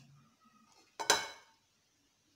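A pot knocks against a hard countertop.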